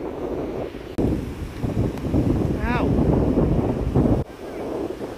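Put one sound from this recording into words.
Waves crash onto the shore.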